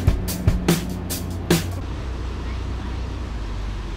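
Water churns and splashes behind a moving boat.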